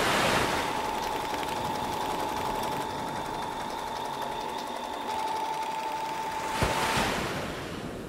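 A sewing machine whirs as it stitches.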